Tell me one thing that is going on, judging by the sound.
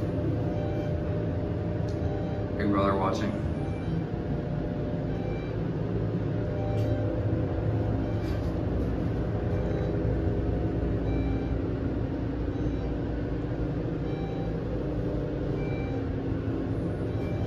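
A lift hums steadily as it travels.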